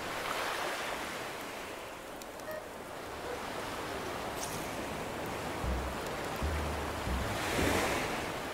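Gentle waves wash onto a beach, swelling and receding.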